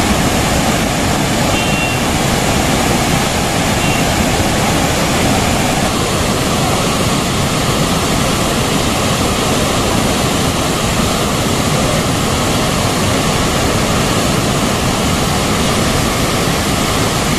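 Waterfalls roar steadily as water rushes over rocks.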